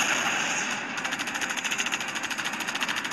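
A cannon fires in a rapid burst.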